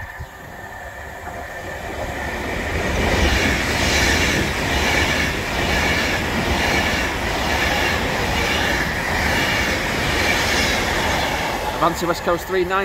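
A train rushes past close by with a loud roar.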